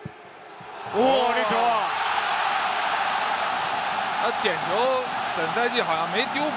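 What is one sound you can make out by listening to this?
A large stadium crowd erupts into a loud roar of cheering.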